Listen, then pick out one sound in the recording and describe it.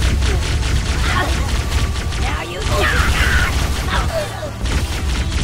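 Alien creatures shriek and squeal.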